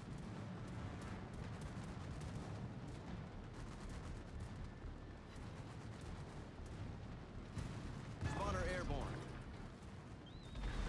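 Sea waves rush against a moving ship's hull.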